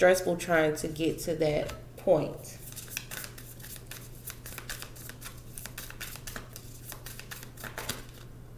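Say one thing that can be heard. Playing cards rustle and slide across a wooden table.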